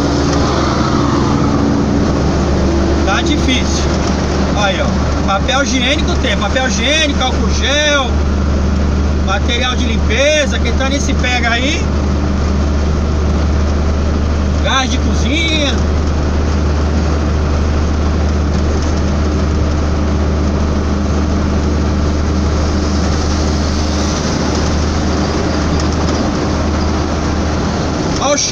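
Tyres roar on the motorway.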